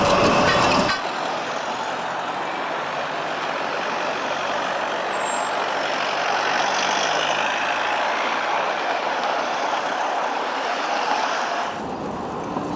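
A tram hums as it approaches slowly.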